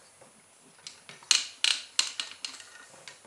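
A plastic hose fitting clicks as it is pulled free.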